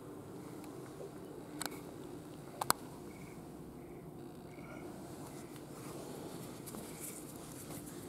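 An elderly woman breathes heavily through her open mouth.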